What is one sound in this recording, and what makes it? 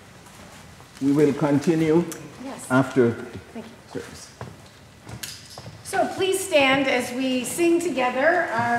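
A woman speaks into a microphone in a large echoing room.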